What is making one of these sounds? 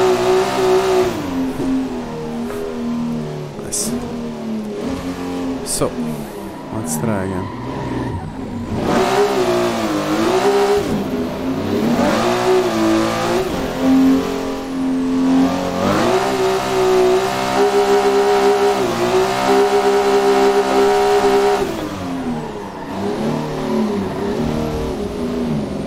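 A racing car engine revs hard, rising and falling in pitch as the car shifts gears.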